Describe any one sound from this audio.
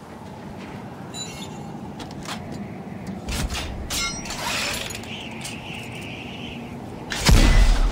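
A metal machine clanks and whirs as it is cranked.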